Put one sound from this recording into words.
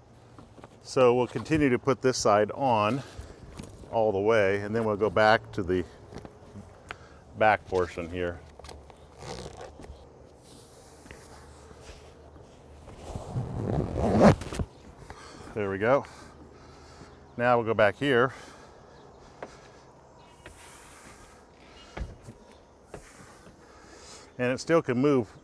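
A man speaks calmly and clearly, close by.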